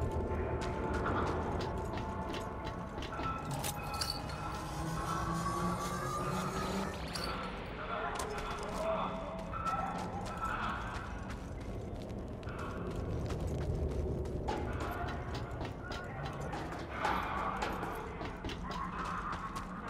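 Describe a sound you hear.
Footsteps crunch on gritty ground.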